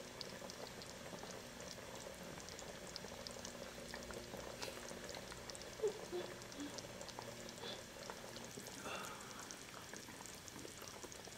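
Chopsticks click and tap against a bowl and pot.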